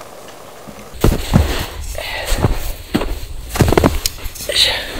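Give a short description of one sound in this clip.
Cans crunch into packed snow.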